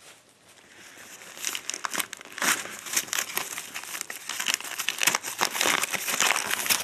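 Wrapping paper crinkles and rustles close by.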